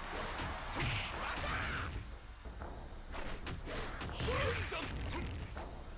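Punches and kicks land with sharp, quick thuds.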